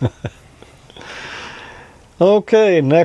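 A man laughs softly close to a microphone.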